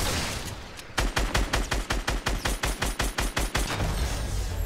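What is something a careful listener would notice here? A rifle fires in a rapid burst of shots.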